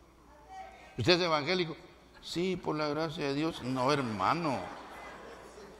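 A middle-aged man preaches with animation through a microphone in a large echoing hall.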